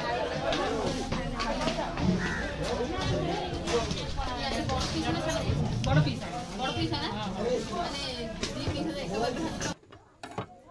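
Several people chatter loudly nearby.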